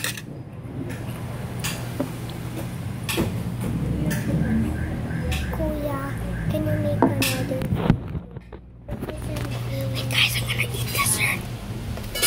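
A child talks close by.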